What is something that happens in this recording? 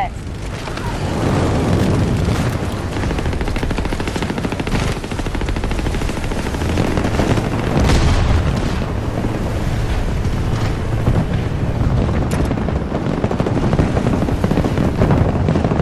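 A heavy vehicle engine rumbles steadily.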